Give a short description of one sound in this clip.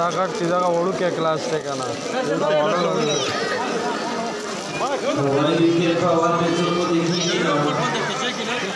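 A group of children chant loudly together close by.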